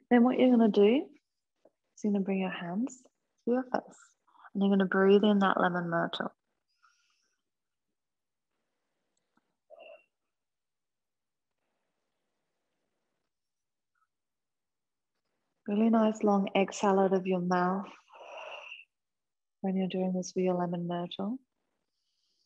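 A woman speaks calmly and softly close by, with long pauses.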